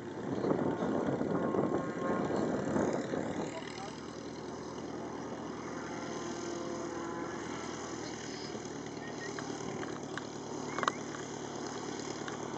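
A small propeller plane's engine drones steadily nearby.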